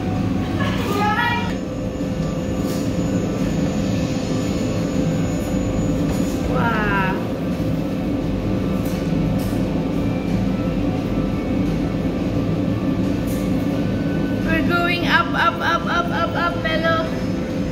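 A low, steady mechanical hum drones from a slowly turning observation wheel.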